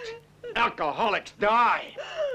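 A man speaks intensely up close.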